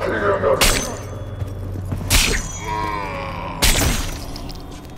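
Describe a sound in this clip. A sword swishes sharply through the air several times.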